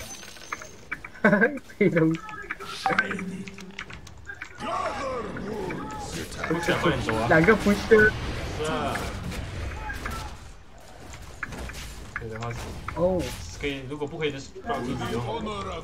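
Game fight sounds clash and crackle.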